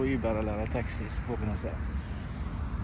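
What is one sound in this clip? A middle-aged man speaks cheerfully, close to the microphone.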